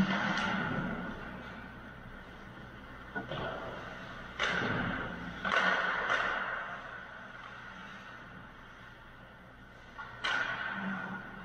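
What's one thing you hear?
Ice skates scrape and hiss across ice in a large, echoing rink.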